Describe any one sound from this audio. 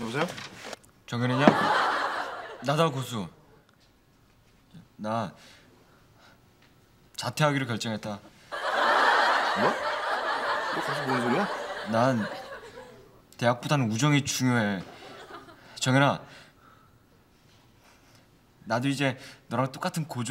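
A young man talks on a phone in a calm voice.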